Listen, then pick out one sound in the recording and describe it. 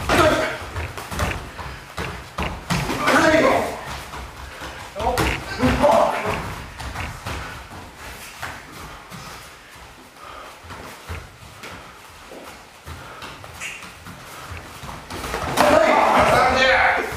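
Punches and kicks thud against protective gear.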